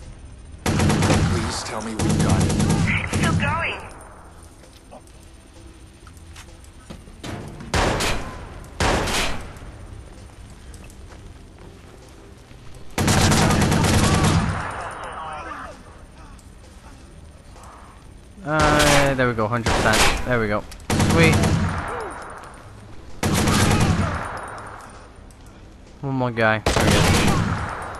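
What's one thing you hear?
An assault rifle fires rapid bursts that echo through a large hall.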